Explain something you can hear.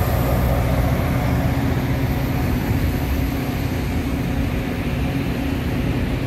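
A passenger train rumbles past close by on the rails.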